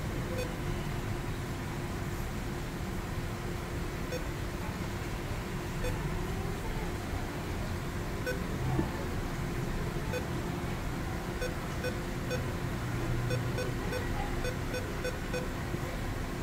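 A car stereo beeps softly with each tap on its touchscreen.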